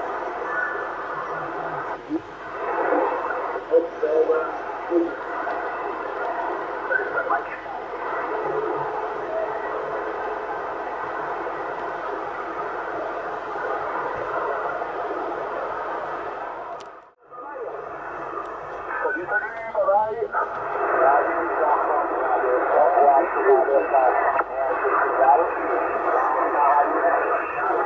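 Radio static hisses and crackles steadily from a small loudspeaker.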